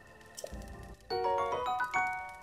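A bright chime of rising notes plays.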